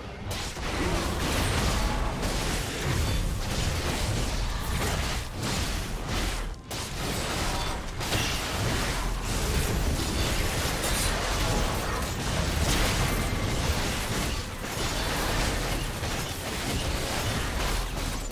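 Spell and attack effects clash and burst in a game battle.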